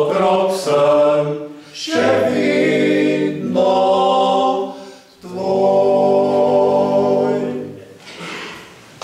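A group of older men sings together in harmony in an echoing hall.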